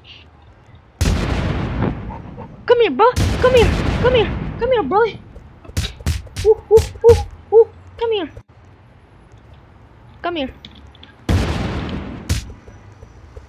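Energy blasts whoosh and crash loudly.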